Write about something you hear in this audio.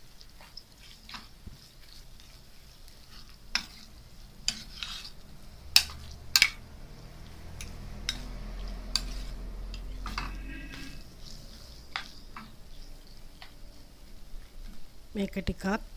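A metal spoon scrapes and clinks against a pan while stirring food.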